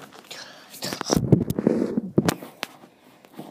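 Handling knocks and rustles the phone close up.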